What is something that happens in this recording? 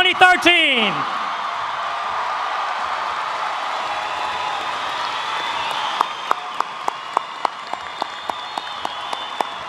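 A large crowd cheers in an echoing hall.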